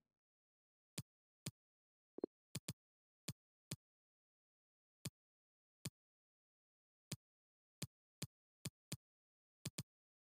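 Short menu clicks tick one by one.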